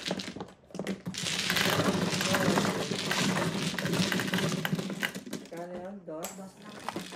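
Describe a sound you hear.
Mahjong tiles rattle and clatter as they are swept into a table.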